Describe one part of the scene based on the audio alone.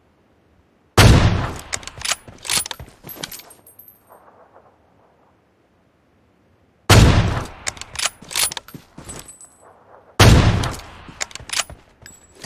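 A sniper rifle fires a loud shot that echoes away.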